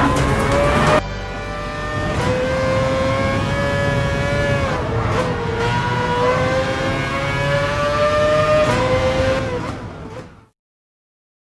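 A race car engine whines loudly, rising and falling as it shifts gears.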